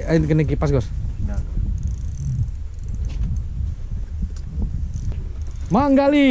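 A fishing reel whirs as it is wound.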